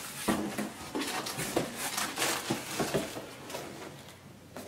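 Plastic wrapping crinkles as hands dig through it.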